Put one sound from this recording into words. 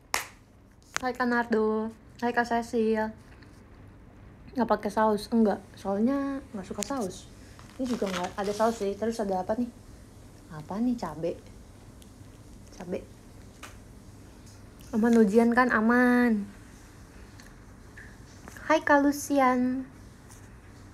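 A young woman talks close by in a light, animated voice, in short bursts with pauses.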